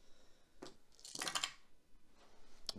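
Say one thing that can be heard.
Dice rattle and clatter in a tray.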